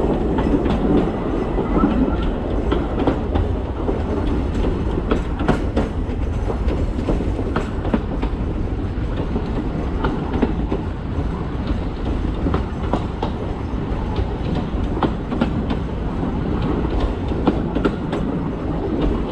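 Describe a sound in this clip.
Train wheels clack and squeal on the track.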